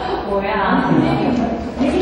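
Water sloshes as a hand stirs it.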